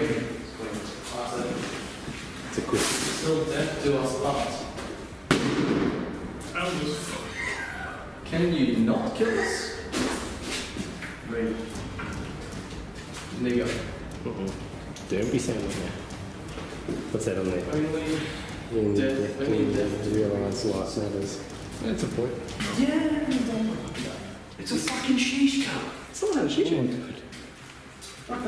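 Young men talk in hushed, tense voices close by in an echoing room.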